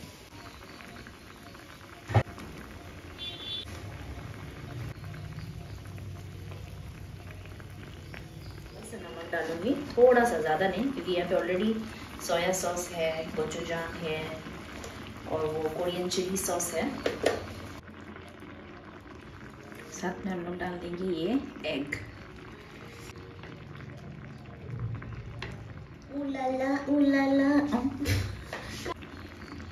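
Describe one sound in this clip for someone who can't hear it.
Thick sauce bubbles and simmers in a pan.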